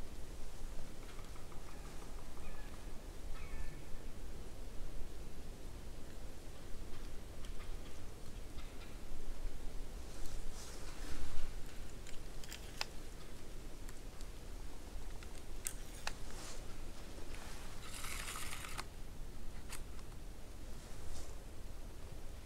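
Wind rumbles softly against the microphone outdoors.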